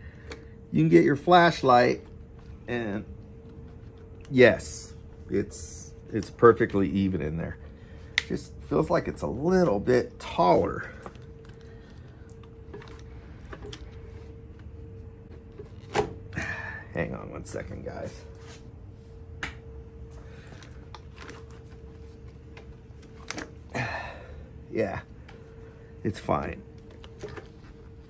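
Hands handle plastic and metal parts with light clicks and rattles.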